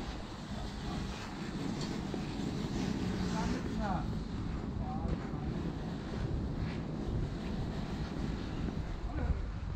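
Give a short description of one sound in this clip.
Light traffic hums steadily outdoors.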